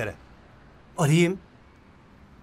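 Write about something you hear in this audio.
A young man speaks briefly close by.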